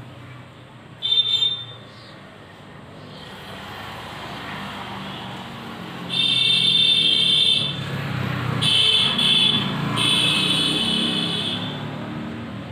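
A marker squeaks on a whiteboard in short strokes.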